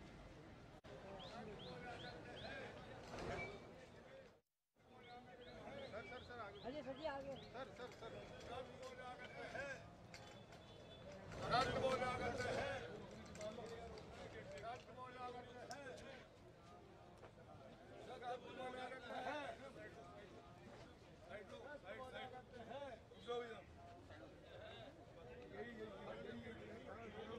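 A crowd of men murmur and call out nearby, outdoors.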